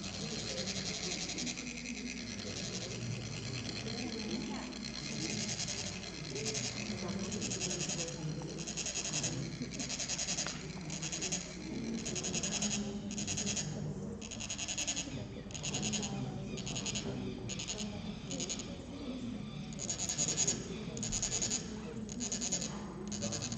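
Metal sand funnels are scraped together, making a rhythmic, high rasping.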